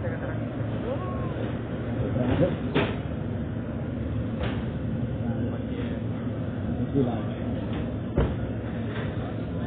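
A crowd murmurs steadily through a loudspeaker outdoors.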